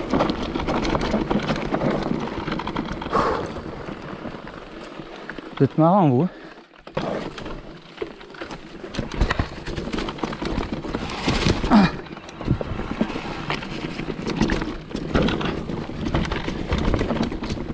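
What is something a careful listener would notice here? Bicycle tyres crunch and rumble over a rough dirt trail.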